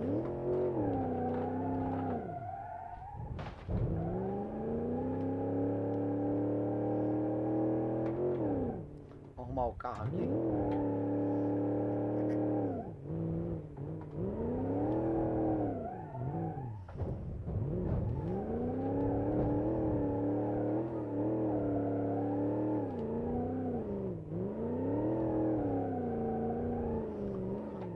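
A car engine roars and revs up and down through the gears.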